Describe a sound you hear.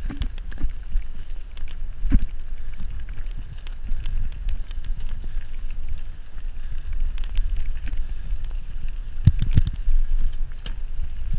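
Bicycle tyres crunch and rattle over gravel.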